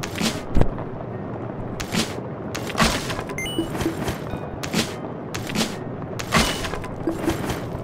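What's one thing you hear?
Short electronic chimes and whooshing game sound effects play repeatedly.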